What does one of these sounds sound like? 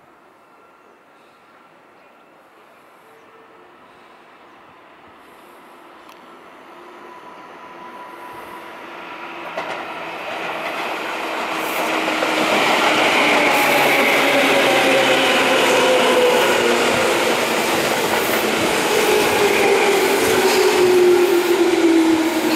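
An electric train approaches and rumbles past close by, growing steadily louder.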